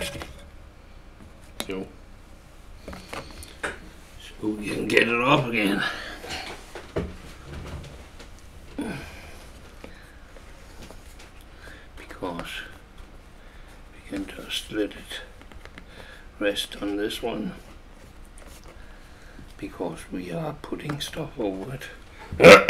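A sheet of paper rustles and slides across a table.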